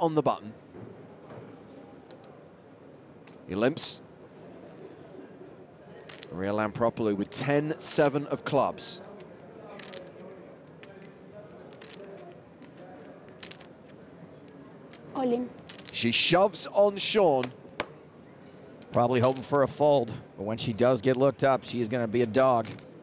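Poker chips click softly as they are handled.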